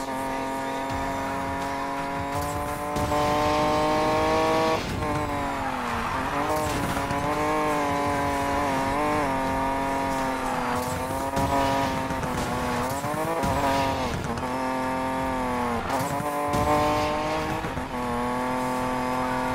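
A racing car engine roars at high speed, its pitch rising and dropping with gear changes.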